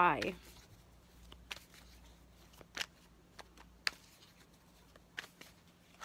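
Playing cards shuffle and tap softly between hands.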